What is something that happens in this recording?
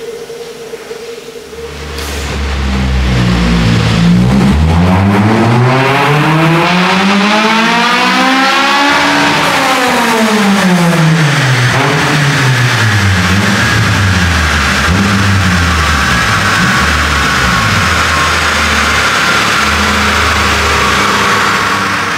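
A car engine idles, then revs up loudly to a high pitch and falls back down.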